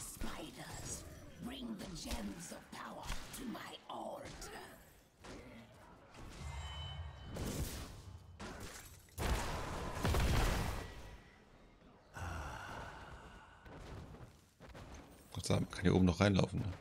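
Game combat sounds clash and zap.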